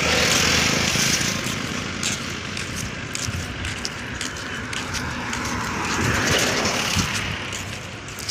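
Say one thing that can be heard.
A heavy truck rumbles along the road.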